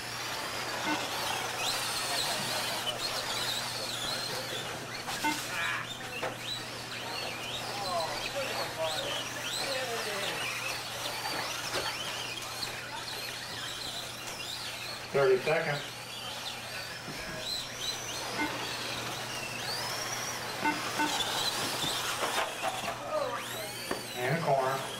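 Small electric motors whine and rev up and down.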